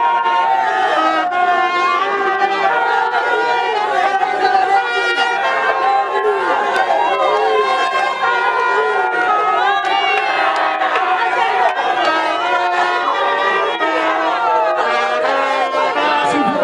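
A crowd talks and shouts close by.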